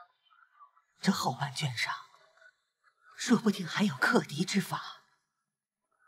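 An elderly woman speaks calmly and firmly close by.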